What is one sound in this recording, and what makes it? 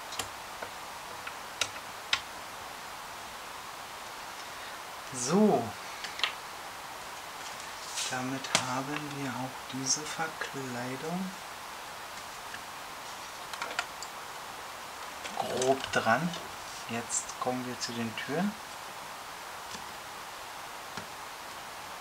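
Plastic parts click and rattle.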